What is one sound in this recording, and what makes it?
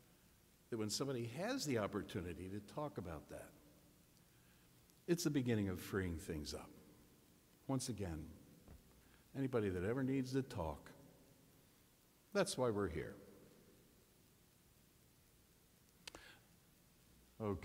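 An elderly man speaks calmly through a microphone in an echoing hall, pausing between phrases.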